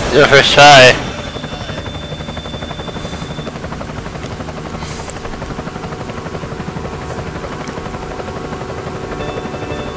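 Car engines hum steadily.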